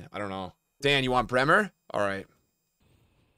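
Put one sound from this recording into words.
A young man speaks with excitement into a close microphone.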